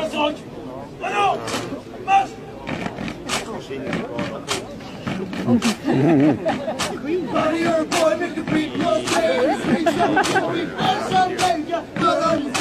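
A group of young men chant loudly together.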